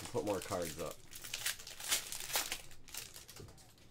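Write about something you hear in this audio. A foil card pack crinkles and tears open.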